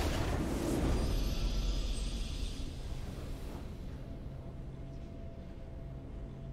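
A triumphant game fanfare plays and fades.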